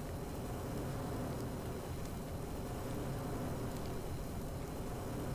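A flamethrower roars steadily.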